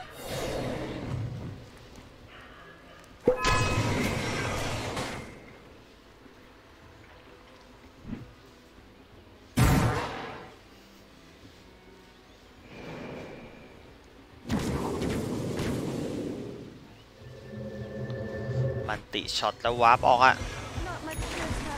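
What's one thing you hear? Game sound effects whoosh and burst as spells are cast in short loud bursts.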